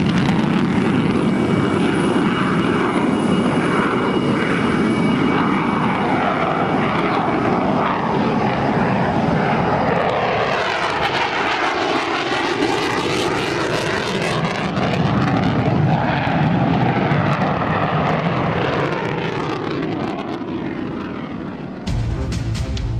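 A jet engine roars loudly with afterburners as a fighter plane passes overhead.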